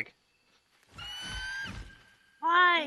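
A large bird of prey gives a loud, shrill cry.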